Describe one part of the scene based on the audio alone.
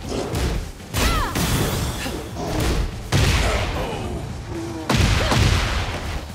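Magic bursts crackle and whoosh.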